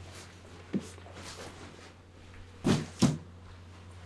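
A box thumps as a man sets it down.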